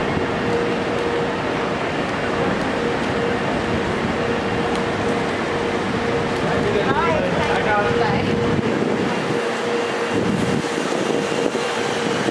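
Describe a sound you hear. A crowd murmurs steadily nearby.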